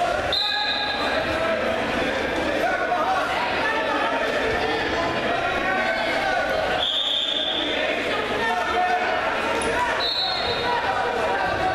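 A crowd of spectators shouts and cheers loudly in an echoing hall.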